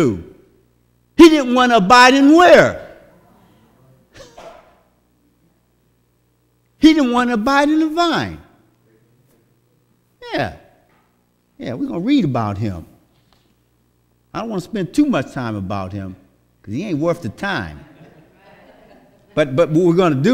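A man speaks in bursts with pauses through a microphone in an echoing hall.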